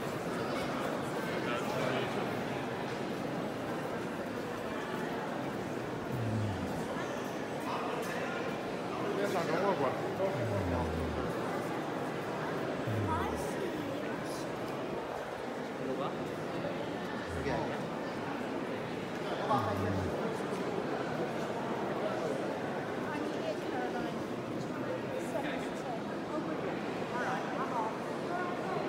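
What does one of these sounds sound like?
A crowd of people murmurs and chatters in a large echoing hall.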